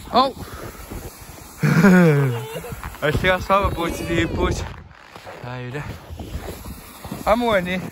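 A sled scrapes across snow.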